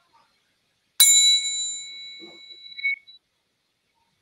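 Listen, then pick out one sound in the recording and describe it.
A triangle is struck once and rings out, fading.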